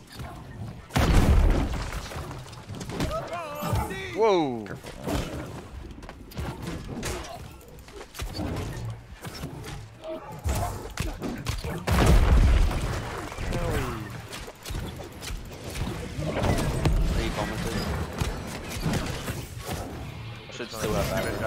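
Swords clash and strike with heavy thuds.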